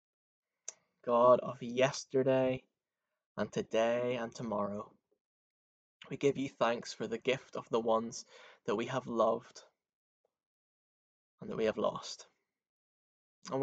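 A young man speaks calmly and close to a microphone, with pauses.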